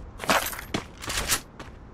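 Ice shatters with a loud crash.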